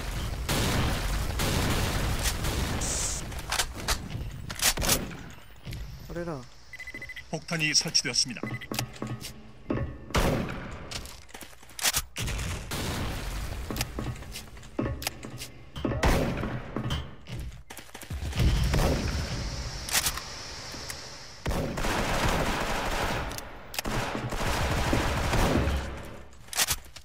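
An assault rifle fires in bursts.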